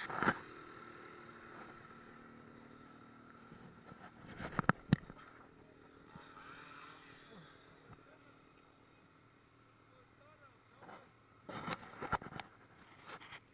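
A snowmobile engine idles steadily nearby.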